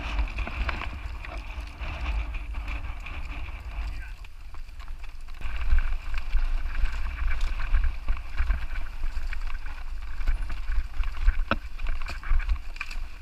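A bicycle chain and frame rattle over bumps.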